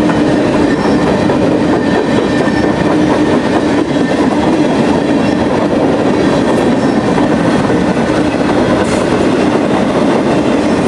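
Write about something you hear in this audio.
A freight train rumbles past close by with loud, steady roaring.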